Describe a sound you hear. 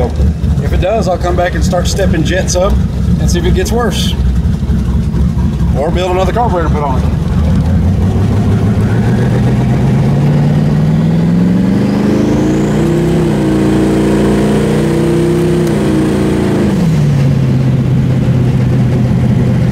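A car engine rumbles steadily and revs up and down.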